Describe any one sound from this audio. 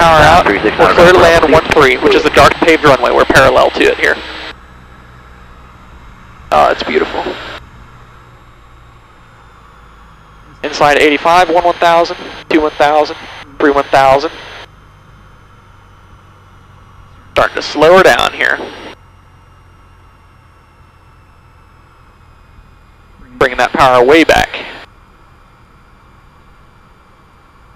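An aircraft engine drones steadily throughout.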